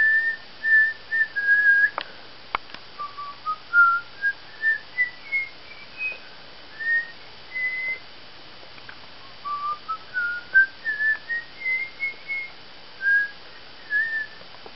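A guinea pig chirps in a long series of short, high, birdlike notes that rise and fall in pitch.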